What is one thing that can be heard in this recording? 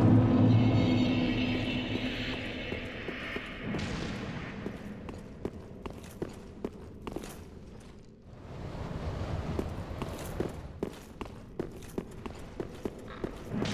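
Armoured footsteps clatter quickly on stone.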